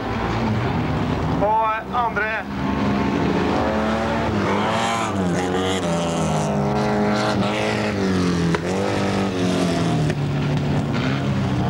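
A rally car engine roars and revs as the car races past.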